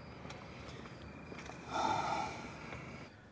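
A man speaks quietly and gravely, close by.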